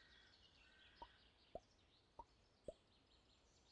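Short soft clicks sound as game pieces move.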